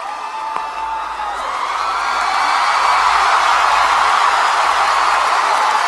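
A large crowd screams and cheers loudly in a big hall.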